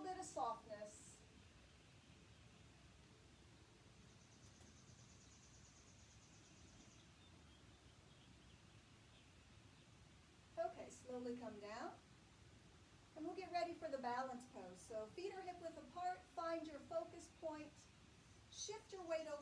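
A young woman speaks calmly, as if giving instructions, close by.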